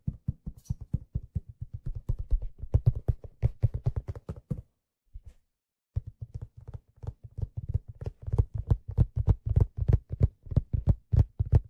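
A man taps rapid, ringing notes on a steel hand drum.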